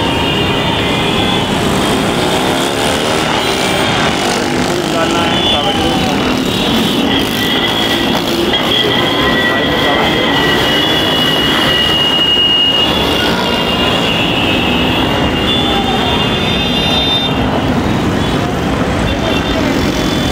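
Motorcycle engines rumble and pass close by.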